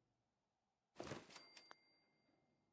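A loud burst of noise sounds as an item is placed.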